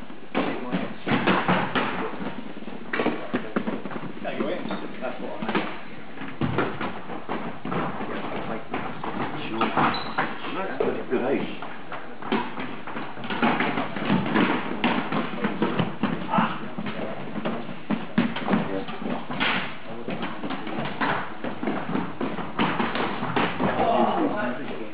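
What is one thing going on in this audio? Sneakers squeak and thud on a wooden floor.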